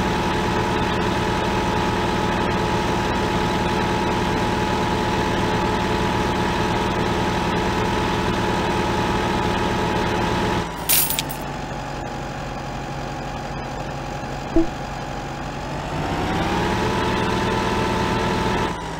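A tractor engine drones steadily, quietens, then rises again.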